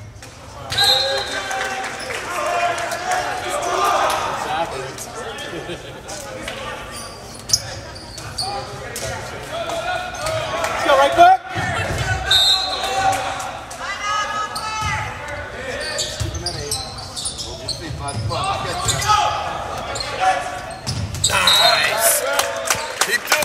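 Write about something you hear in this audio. Teenage boys shout to one another in an echoing gym.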